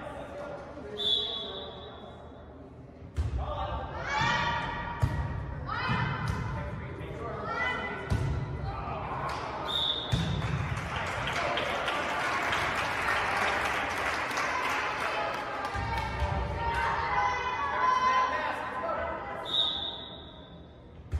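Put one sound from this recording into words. A referee's whistle blows short, sharp blasts in an echoing hall.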